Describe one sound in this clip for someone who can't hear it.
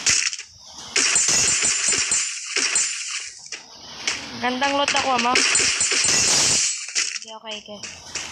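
A sniper rifle fires loud shots.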